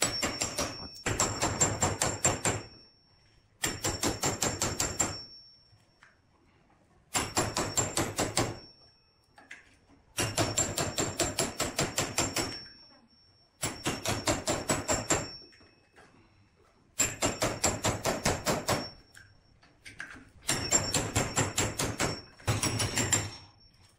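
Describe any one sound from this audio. A hammer strikes a steel punch in rapid bursts of ringing metallic blows.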